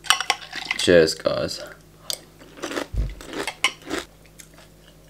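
A spoon clinks against a ceramic mug.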